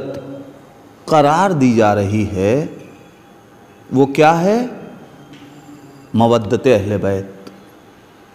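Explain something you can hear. A man speaks with feeling into a close microphone, in short phrases with pauses.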